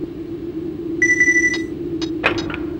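An electronic menu beeps.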